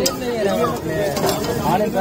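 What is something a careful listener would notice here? A metal spatula scrapes a hot griddle.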